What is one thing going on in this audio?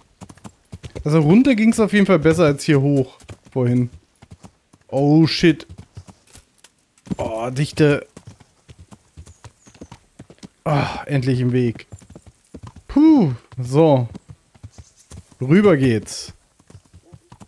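A man talks with animation close to a headset microphone.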